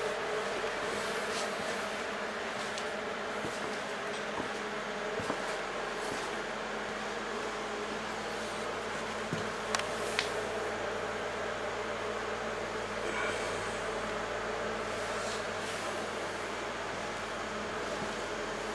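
Machinery runs with a steady hum.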